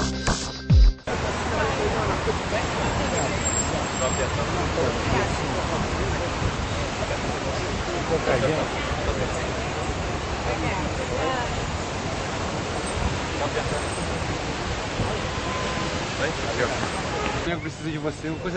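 Outdoors in wind, a small crowd of men and women chatter at once.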